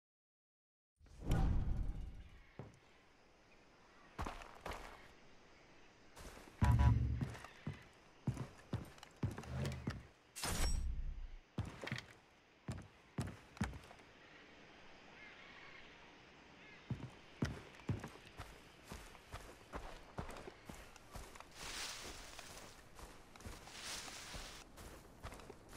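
Footsteps crunch over ground and wooden boards.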